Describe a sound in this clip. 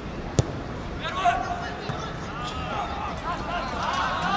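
Players shout across an open pitch outdoors.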